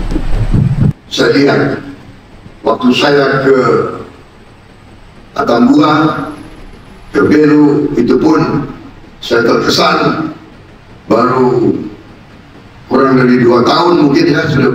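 A man speaks firmly into a microphone, heard through loudspeakers.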